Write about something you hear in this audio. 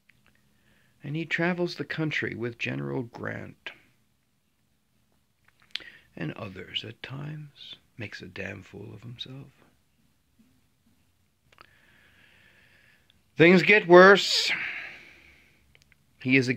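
A middle-aged man speaks calmly and close to the microphone, with pauses.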